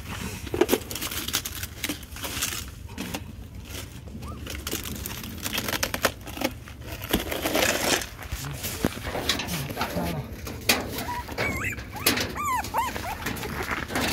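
Gravel crunches and rustles under hands and feet.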